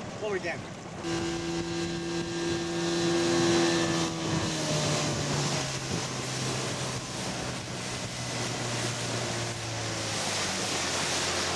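An outboard motor roars as a boat speeds up.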